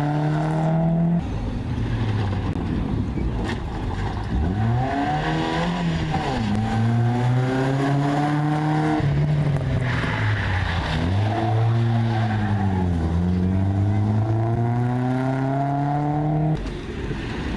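A rally car engine revs hard and roars past, its pitch rising and falling with each gear change.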